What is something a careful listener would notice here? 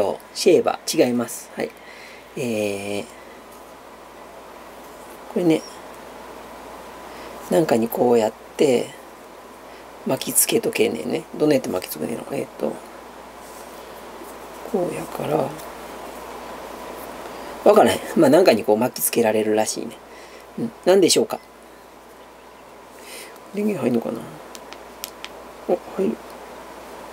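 A woman talks in short bursts, close by.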